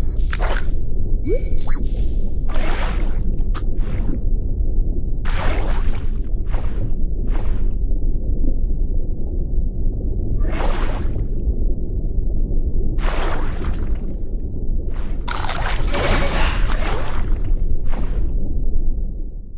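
A shark chomps its prey in short, hissing bursts.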